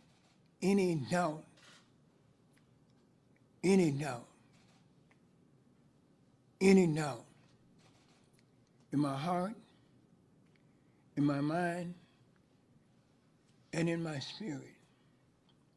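An elderly man speaks slowly into a microphone, in short phrases with long pauses.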